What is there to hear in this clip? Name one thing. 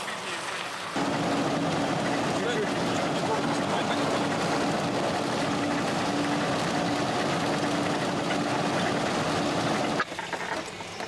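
A car engine hums steadily while driving on a gravel road.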